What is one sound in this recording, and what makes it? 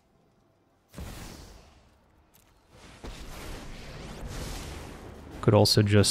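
A magical shimmering whoosh swells as a card is played.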